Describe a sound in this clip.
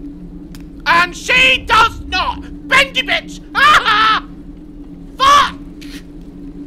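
A man shouts excitedly into a close microphone.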